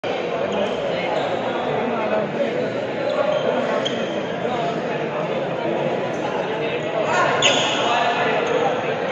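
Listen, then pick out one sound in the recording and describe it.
A crowd of people chatter in the background of an echoing hall.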